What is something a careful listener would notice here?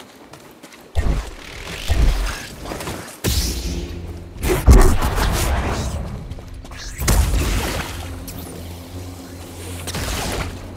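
Blaster shots crack and whine.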